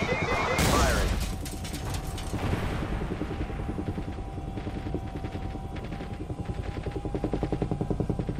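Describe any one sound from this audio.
Helicopter rotor blades thump rapidly and steadily.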